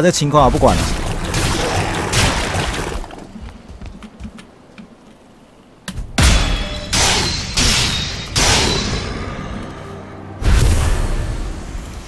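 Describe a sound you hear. Heavy blows land one after another, each with a sharp crackling burst that rings out and fades.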